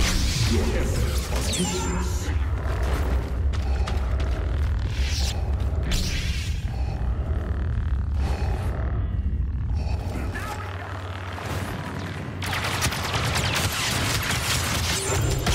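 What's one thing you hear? Blaster shots fire in rapid bursts.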